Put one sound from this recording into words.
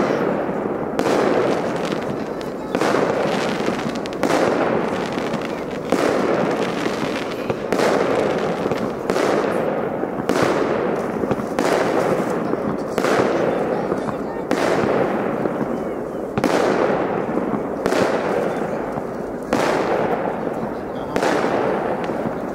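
Fireworks burst with loud booms in the distance, one after another, each echoing away.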